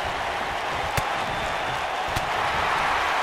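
Heavy blows thud against a body.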